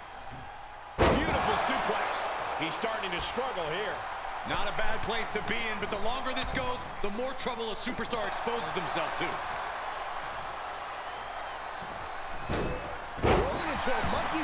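Body slams thud on a wrestling ring mat.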